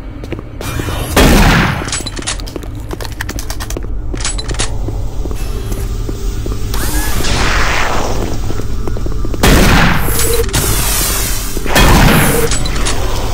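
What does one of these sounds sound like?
A shotgun fires with heavy booming blasts.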